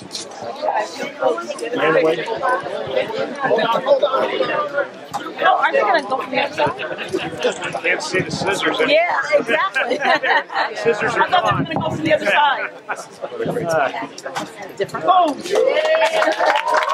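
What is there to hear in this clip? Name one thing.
A crowd of men and women chatter and call out all around outdoors.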